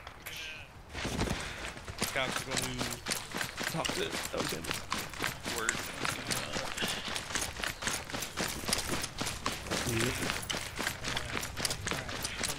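Footsteps crunch quickly on hard ground.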